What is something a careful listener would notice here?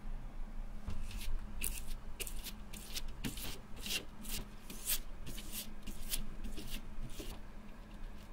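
A glue brush scrapes and swishes across a rough surface.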